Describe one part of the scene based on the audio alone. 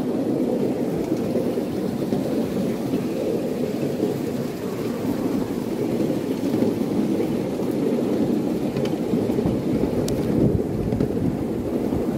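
A small train rumbles and clatters steadily along its track.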